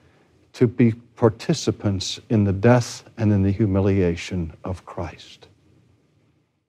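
An elderly man speaks calmly and clearly, close to a microphone.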